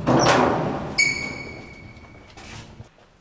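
An elevator button beeps.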